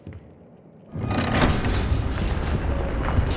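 A shutter slams shut with a loud rumble.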